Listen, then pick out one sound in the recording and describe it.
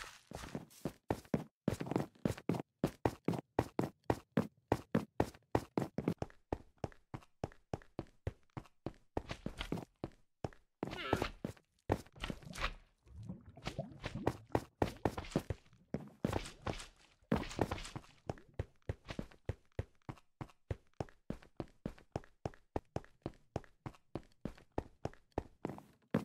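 Quick footsteps patter steadily on wood and stone.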